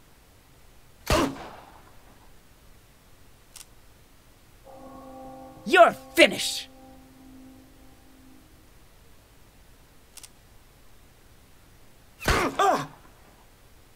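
Sharp strikes and cries ring out in a game fight.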